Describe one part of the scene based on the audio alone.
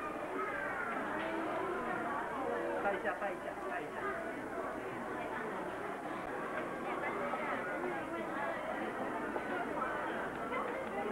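A crowd of men and women chatter and talk over one another close by.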